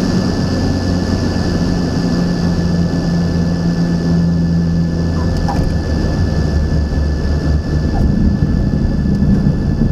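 Tyres rumble over a runway.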